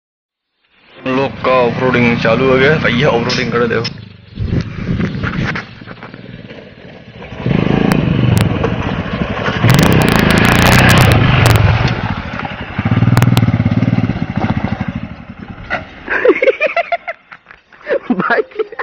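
A motorcycle engine revs and idles close by.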